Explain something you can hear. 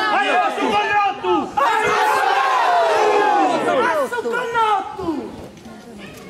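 A crowd of women cries out in loud, shrill, wavering calls outdoors.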